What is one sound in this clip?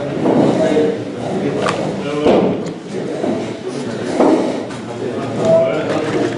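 An elderly man speaks nearby.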